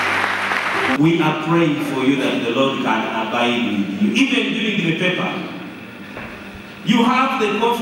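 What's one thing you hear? A man speaks with animation into a microphone, heard through loudspeakers in a large echoing hall.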